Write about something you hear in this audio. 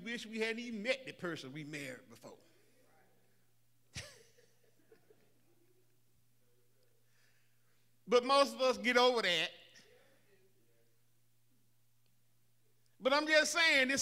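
An older man preaches with feeling into a microphone, in bursts with long pauses.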